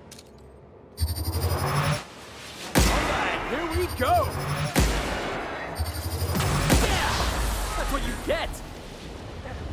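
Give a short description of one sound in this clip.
A gun fires loud, rapid shots.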